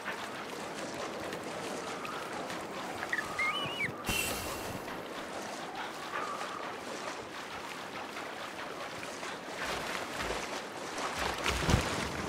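Water splashes steadily.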